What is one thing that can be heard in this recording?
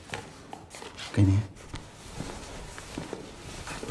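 A younger man speaks briefly.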